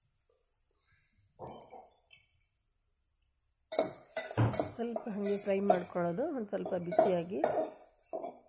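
A spoon scrapes and clinks against a metal pot.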